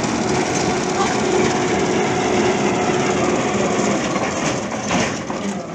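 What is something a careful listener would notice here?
A large winch machine runs with a loud, steady rumbling hum.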